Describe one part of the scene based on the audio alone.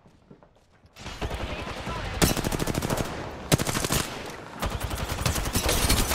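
Rapid gunfire bursts ring out at close range.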